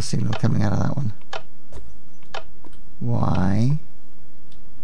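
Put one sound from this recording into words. A man speaks with animation, close through a headset microphone.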